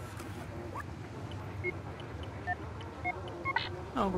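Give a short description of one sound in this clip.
Keypad buttons beep as a code is entered.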